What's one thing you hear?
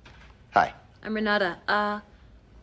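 A woman speaks with drawn-out, sultry sounds.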